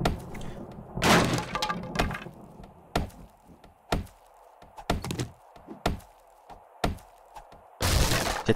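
A tool strikes a wooden wall with a thud.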